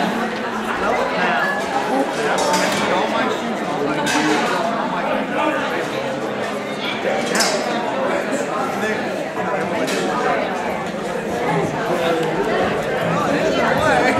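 Many people chatter quietly in a large echoing hall.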